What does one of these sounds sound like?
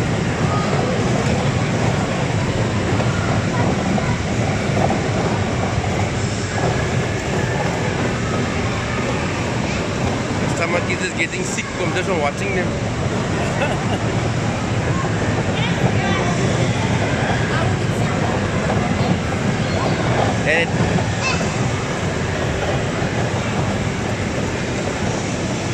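A fairground ride rumbles steadily as it spins.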